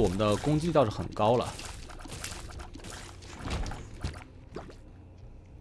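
Small video game shots pop and splat in quick bursts.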